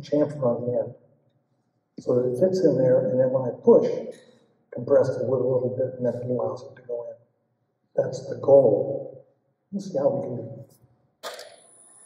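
An elderly man talks calmly into a clip-on microphone.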